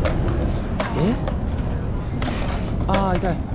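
A skateboard clatters onto concrete.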